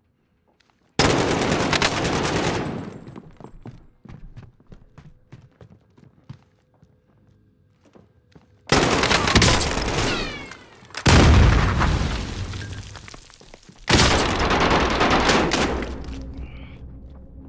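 Gunfire and explosions roar in loud bursts.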